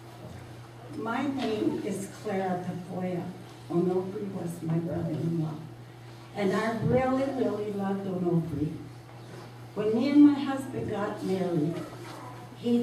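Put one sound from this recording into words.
A woman speaks calmly into a microphone, heard over loudspeakers in a hall.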